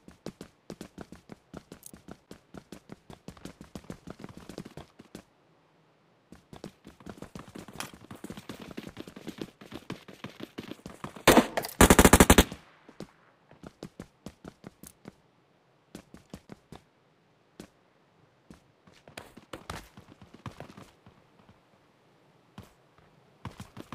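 Footsteps thud quickly on hard floors and ground.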